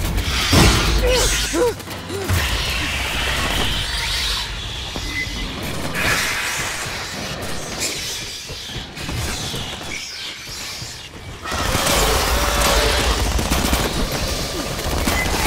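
Automatic rifles fire in rapid bursts.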